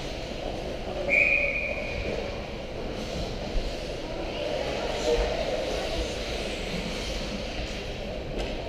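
Ice skates scrape and glide across the ice.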